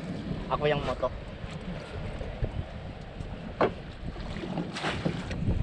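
Wind rushes over open water.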